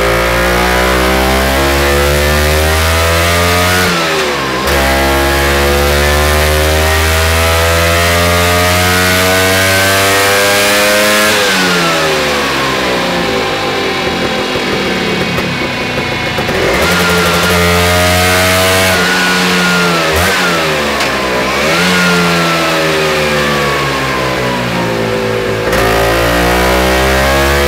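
A scooter engine revs loudly and repeatedly, rising in pitch and dropping back.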